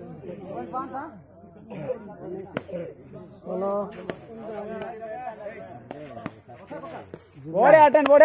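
Young men shout and chatter outdoors nearby.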